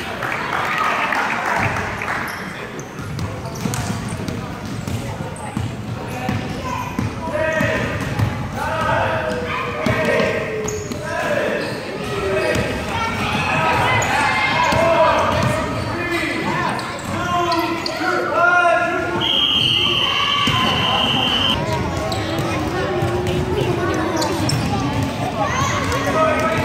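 Children shout and chatter in a large echoing gym.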